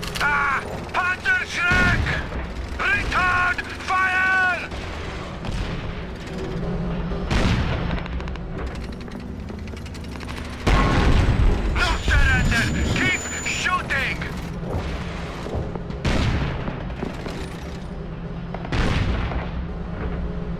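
Tank engines rumble and clank.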